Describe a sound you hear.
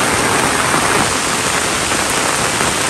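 Rain patters on leaves.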